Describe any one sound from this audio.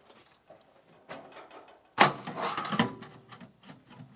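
Metal trim rattles and clanks against a wall.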